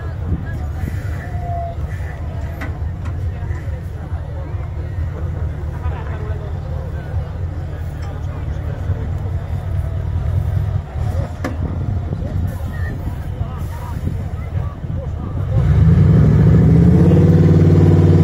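A heavy truck engine rumbles deeply, then revs loudly.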